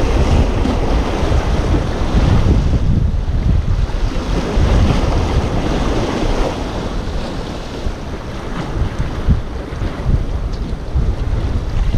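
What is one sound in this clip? Small waves lap softly on the water.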